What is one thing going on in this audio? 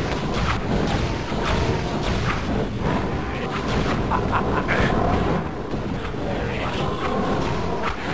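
Fireballs explode with loud bursts.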